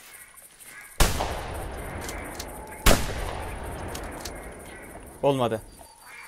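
A rifle fires two loud shots that echo and slowly die away.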